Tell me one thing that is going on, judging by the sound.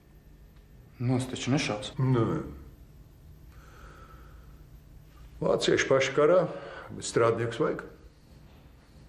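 An elderly man speaks calmly and close by.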